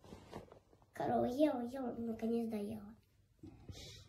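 A young child speaks in a small voice.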